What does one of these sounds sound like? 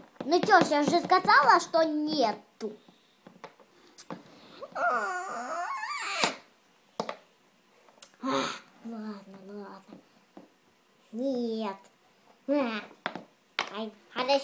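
Plastic toys tap softly on a table.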